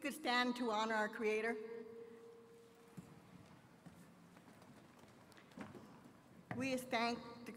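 A woman sings slowly into a microphone, heard through loudspeakers in a large hall.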